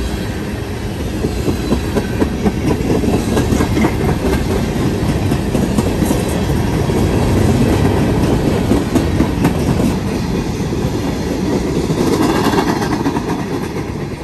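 Steel wheels clatter and click over rail joints.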